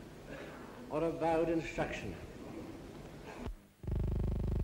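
A man speaks formally into a microphone.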